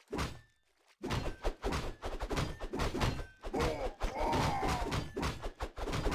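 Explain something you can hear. Weapons clash and thud in a battle.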